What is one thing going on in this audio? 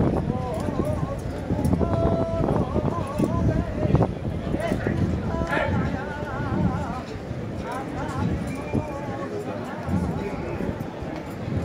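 A crowd murmurs and talks nearby.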